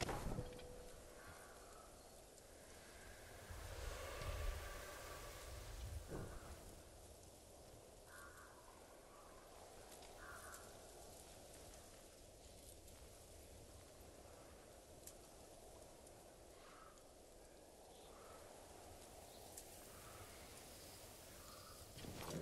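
Crickets chirp in short bursts.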